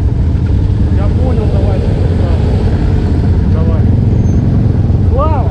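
Motorcycle engines rev up and down in short bursts nearby.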